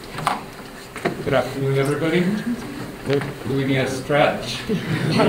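A man speaks calmly into a microphone in a large echoing hall.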